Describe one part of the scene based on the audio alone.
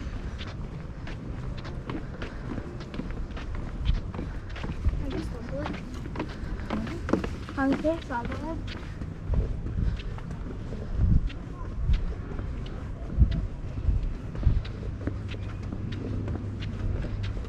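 Footsteps thud on stone and wooden steps.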